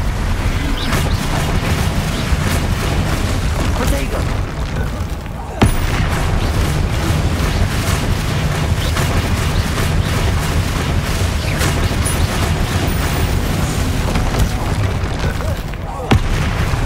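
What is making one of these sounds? Magic spells crackle and zap in quick bursts.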